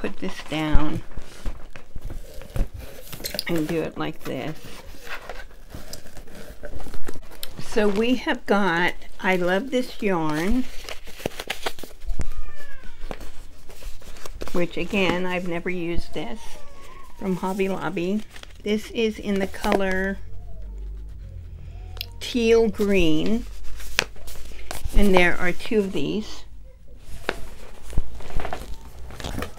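An elderly woman talks calmly and close by.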